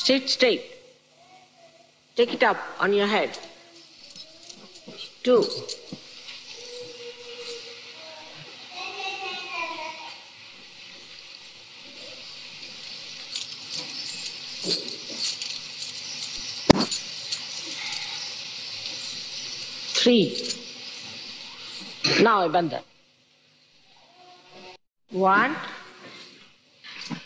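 An elderly woman speaks calmly into a microphone, in short phrases with pauses.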